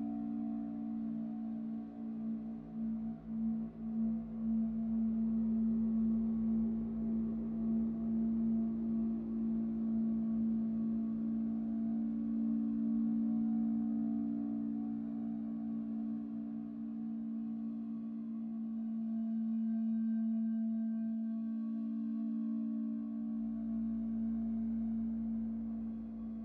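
A modular synthesizer plays a steady, droning electronic tone.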